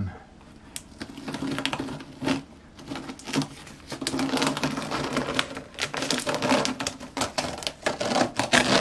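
A strip of masking tape crackles and rustles as it is peeled up.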